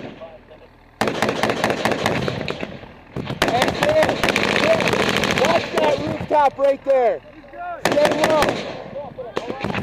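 Rifles fire loud rapid bursts close by.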